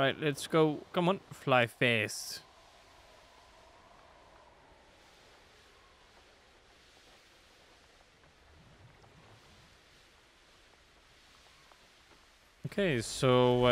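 Wind rushes steadily past during a fast flight over water.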